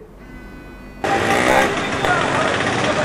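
Street traffic hums outdoors with a motorbike passing close by.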